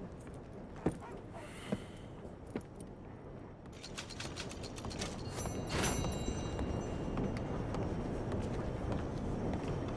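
Boots thud on wooden boards.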